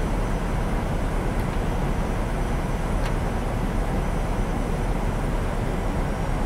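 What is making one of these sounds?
Jet engines drone steadily in a low, rushing roar.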